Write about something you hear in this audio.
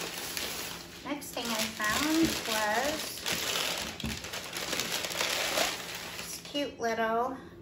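Tissue paper crinkles as it is unwrapped.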